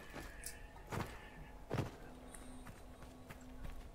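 Stone rubble crashes and crumbles.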